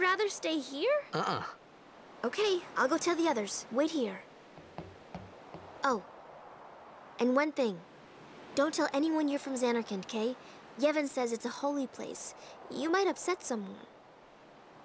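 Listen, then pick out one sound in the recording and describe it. A young woman speaks lively and clearly, close by.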